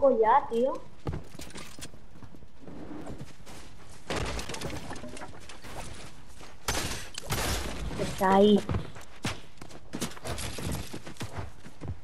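Footsteps patter quickly on wooden boards.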